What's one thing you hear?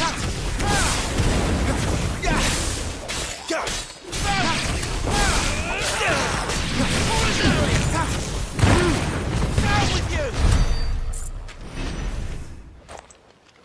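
Heavy blasts and crackling fire erupt in quick bursts.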